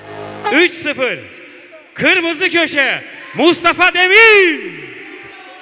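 A man announces loudly through a loudspeaker in a large echoing hall.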